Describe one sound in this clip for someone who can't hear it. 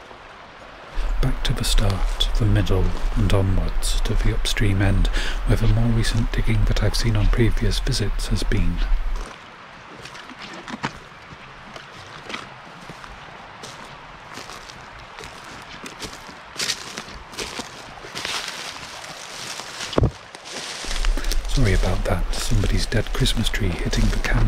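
A stream flows nearby.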